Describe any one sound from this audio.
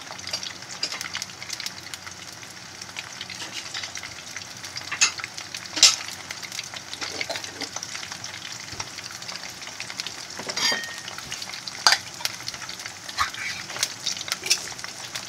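Potato sticks sizzle steadily in hot oil in a frying pan, with small pops and crackles.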